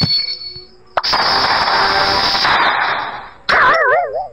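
Game sound effects whoosh and clash loudly.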